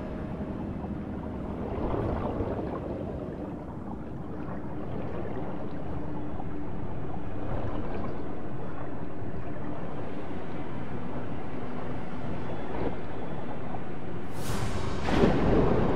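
Water churns and swirls as a swimmer strokes through it underwater.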